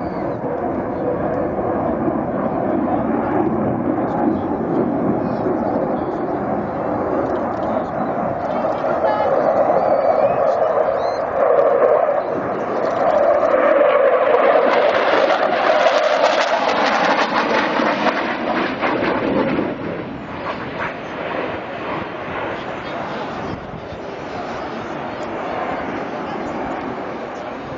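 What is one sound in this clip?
A jet engine roars overhead, growing louder as it passes and then fading away.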